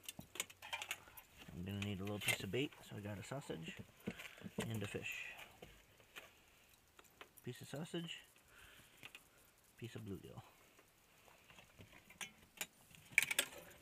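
Objects clatter and clink as a hand rummages among them.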